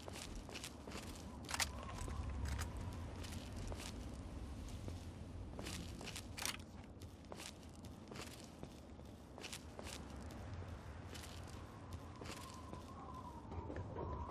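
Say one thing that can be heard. Footsteps crunch over gravel and debris.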